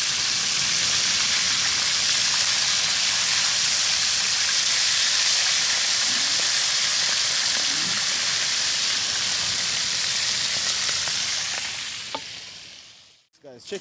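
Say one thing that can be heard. Food sizzles loudly in a frying pan.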